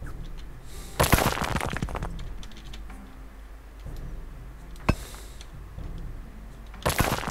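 Magical game effects whoosh and crackle.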